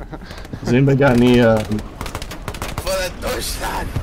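A submachine gun fires in short bursts nearby.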